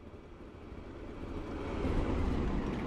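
A diesel locomotive roars loudly as it passes close by.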